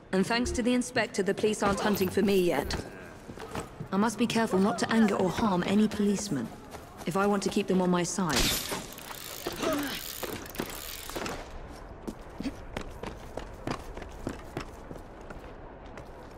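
Footsteps patter quickly on stone and rooftops.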